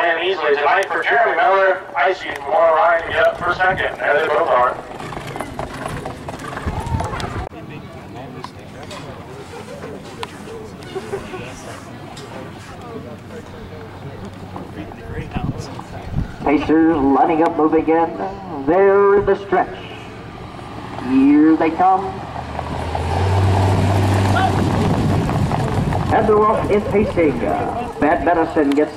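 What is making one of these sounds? Horses' hooves thud on a dirt track.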